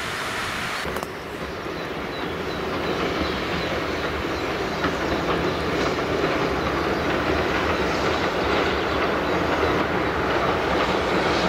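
River water rushes steadily.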